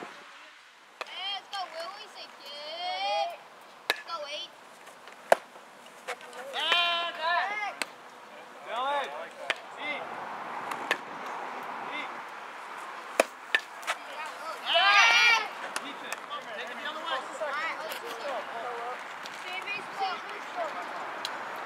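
Young players shout loud encouragement across an open field.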